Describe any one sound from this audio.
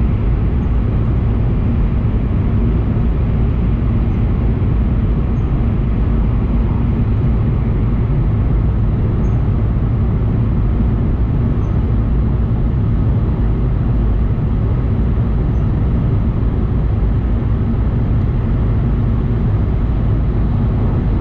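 A moving vehicle rumbles steadily, heard from inside.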